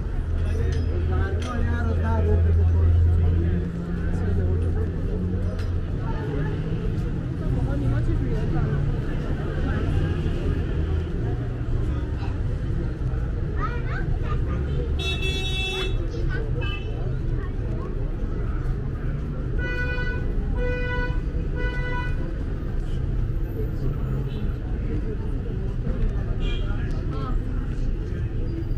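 A busy crowd of men and women chatters nearby outdoors.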